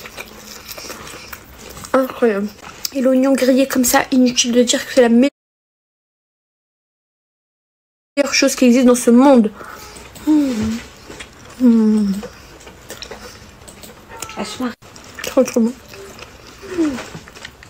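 A young woman chews and bites into food close to a microphone.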